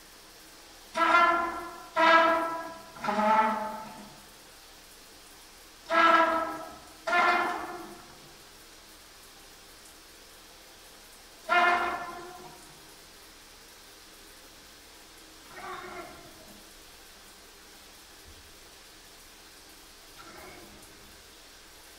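A trumpet plays short loud notes that ring and fade in a small echoing room.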